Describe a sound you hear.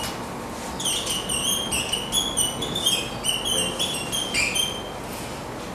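A marker squeaks sharply in short strokes across a whiteboard.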